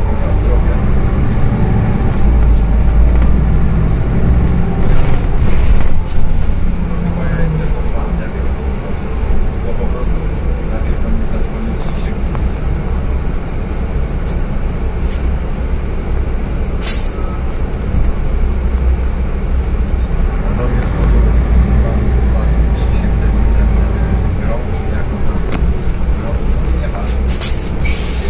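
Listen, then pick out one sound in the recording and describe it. A bus engine hums and rumbles steadily from inside the bus.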